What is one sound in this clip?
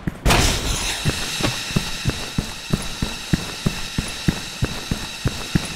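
Footsteps thud at an even pace.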